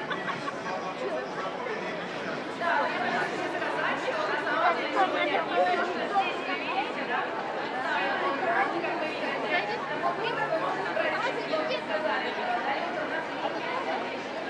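A crowd of men and women chatters all around outdoors.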